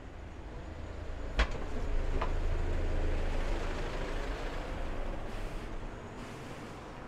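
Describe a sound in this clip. A diesel lorry drives past close by.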